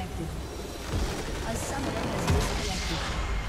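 A game building blows up with a deep boom.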